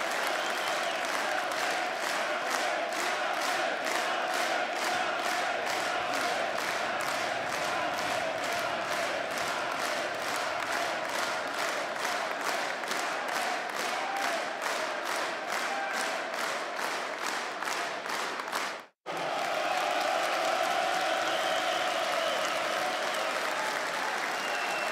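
A large crowd cheers and roars steadily in an echoing arena.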